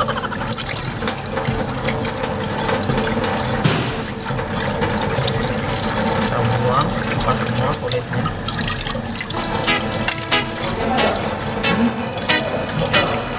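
Tap water runs and splashes.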